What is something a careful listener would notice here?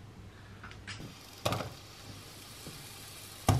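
Onion sizzles softly in hot oil.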